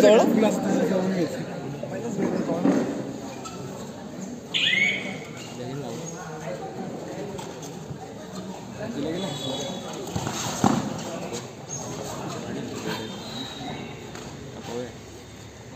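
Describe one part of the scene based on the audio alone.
Young men shout and call out to each other during a game.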